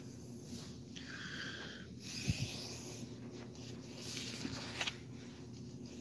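A man speaks quietly, close to the microphone.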